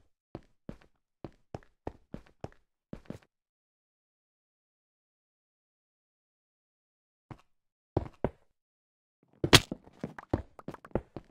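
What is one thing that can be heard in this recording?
Stone blocks thud softly as they are placed one after another.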